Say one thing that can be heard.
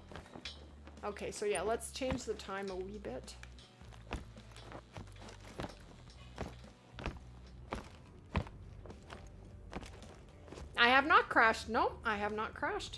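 A woman talks with animation into a close microphone.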